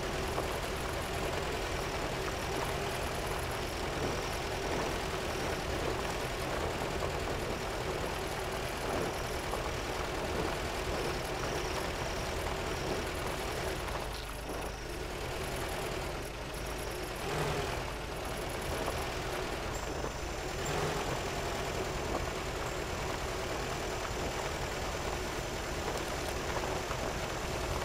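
An off-road engine rumbles steadily.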